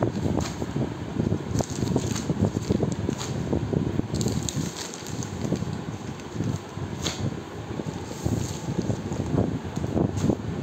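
Plastic packets crinkle and rustle as they are handled.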